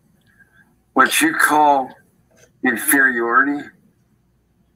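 A man speaks with animation through a microphone, in two short bursts.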